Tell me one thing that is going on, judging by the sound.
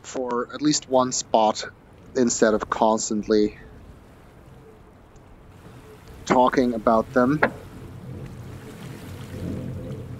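Waves wash and churn against rocks.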